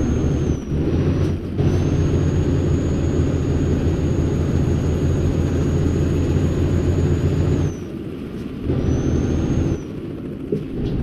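A truck engine drones low and steady, dropping away briefly now and then.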